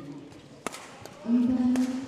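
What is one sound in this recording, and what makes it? A racket strikes a shuttlecock with sharp pops in a large echoing hall.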